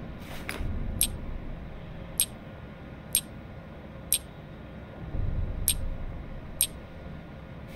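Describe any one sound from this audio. Shells click one by one as they are taken from a box.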